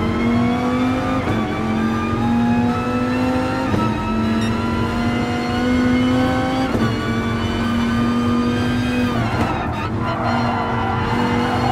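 A racing car engine roars loudly, rising in pitch and dropping sharply with each gear change.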